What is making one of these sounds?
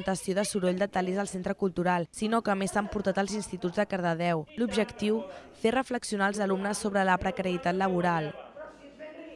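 A man speaks with animation in a loud, sing-song voice.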